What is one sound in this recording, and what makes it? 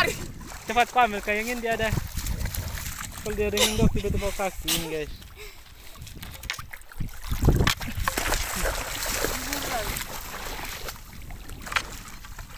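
Shallow water splashes around wading feet.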